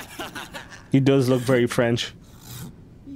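A man laughs loudly in a cartoonish voice.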